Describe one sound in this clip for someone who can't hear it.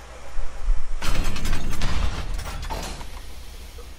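A heavy crate lid opens with a mechanical hiss.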